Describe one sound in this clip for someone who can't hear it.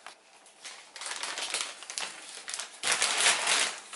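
A plastic bag is set down on a counter with a thump.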